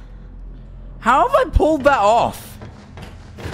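A young man cries out loudly in fright.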